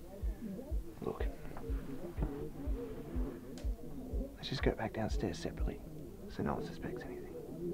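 A young man speaks quietly, close by.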